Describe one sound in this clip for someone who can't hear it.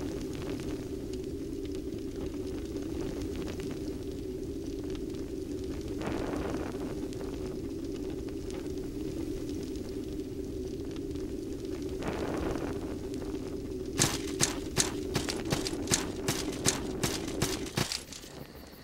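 A fire crackles and hisses steadily.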